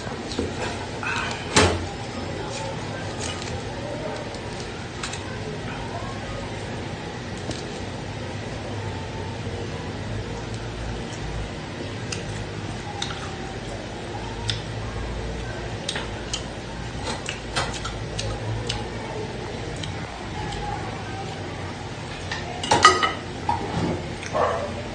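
A knife cuts through crispy roast meat with crunching sounds.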